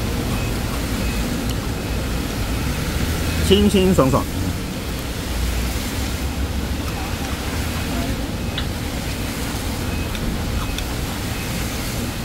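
Chopsticks tap lightly against a ceramic plate.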